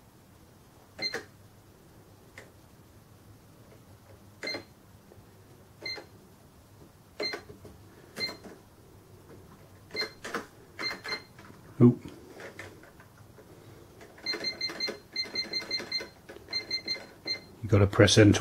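Buttons on a cash register click as they are pressed.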